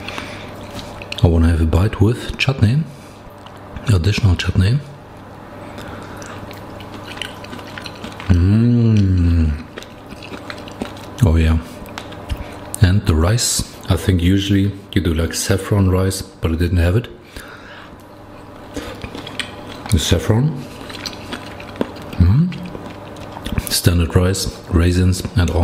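A fork scrapes and taps against a plate.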